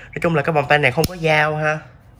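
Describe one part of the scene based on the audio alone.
A plastic buckle snaps shut with a sharp click.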